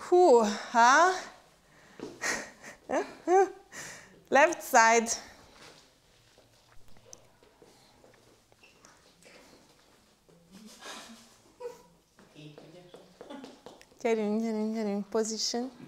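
A woman gives instructions with animation in a large echoing room.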